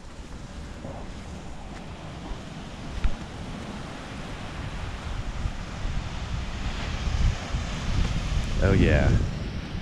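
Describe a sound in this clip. Waves wash softly onto a beach.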